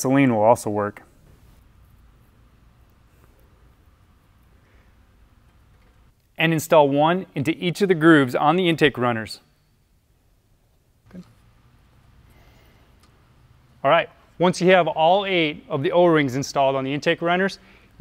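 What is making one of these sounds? A man speaks calmly and clearly into a clip-on microphone, close by.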